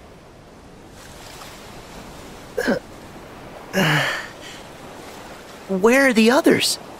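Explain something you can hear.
Gentle waves wash softly onto a shore.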